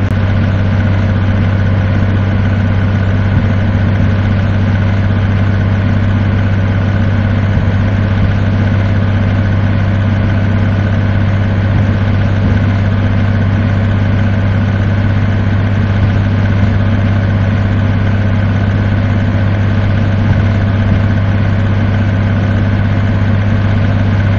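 A truck engine hums steadily and loudly at cruising speed.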